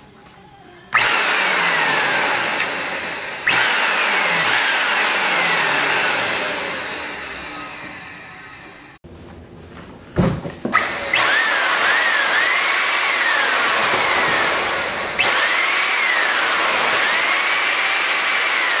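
An electronic siren wails loudly with a harsh, hissing tone, sweeping up and down.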